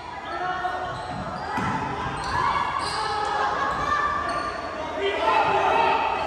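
A basketball bounces on the wooden floor.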